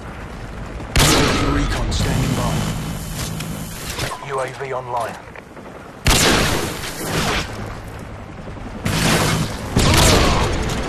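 A sniper rifle fires with a sharp crack.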